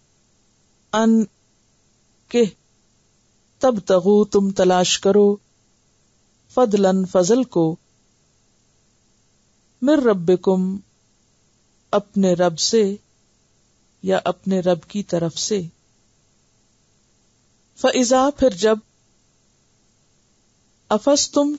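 A woman speaks calmly into a microphone in short phrases with pauses.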